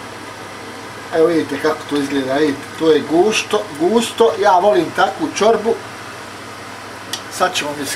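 A spoon stirs and scrapes in a pot of thick soup.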